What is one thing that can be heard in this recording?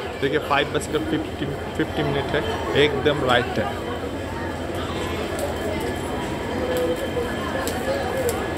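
A crowd of people murmurs and talks nearby.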